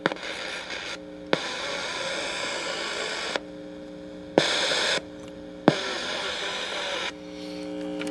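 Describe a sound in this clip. A radio hisses with static that cuts in and out.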